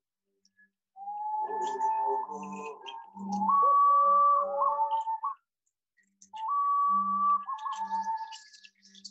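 A man blows a flute, playing high wavering notes.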